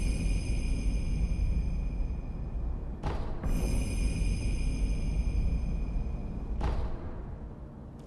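A low wind rumbles steadily, then fades.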